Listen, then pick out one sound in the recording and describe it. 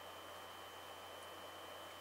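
Milk pours into a plastic jug.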